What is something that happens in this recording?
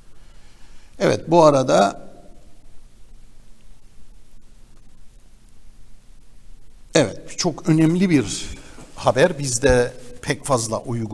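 A middle-aged man speaks into a microphone with animation, in short bursts.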